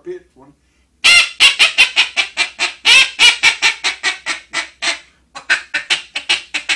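A man blows a duck call close by, making loud, rapid quacks that come in bursts and fade off.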